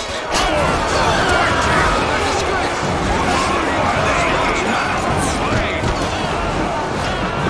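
Swords and shields clash and clang in a busy battle.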